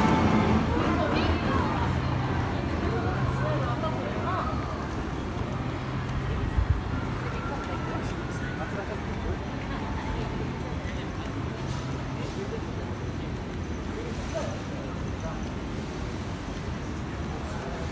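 A busy street murmurs with distant voices and city noise.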